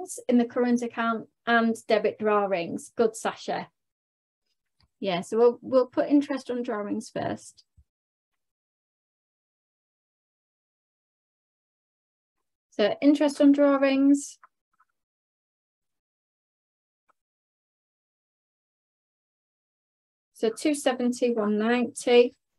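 A young woman explains calmly through a microphone, with pauses between phrases.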